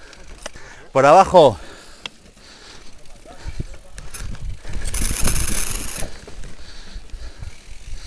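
Bicycle tyres crunch and rattle over a rocky dirt trail.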